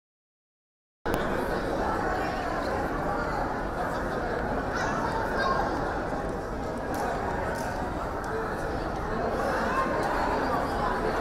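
Men and women murmur and chatter in a crowd nearby.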